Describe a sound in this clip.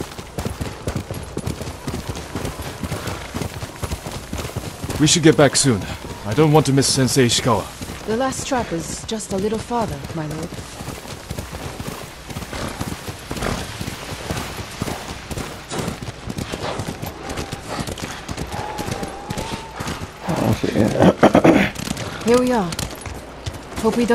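Horses' hooves gallop over snowy ground.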